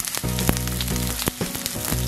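Metal tongs click against a pan.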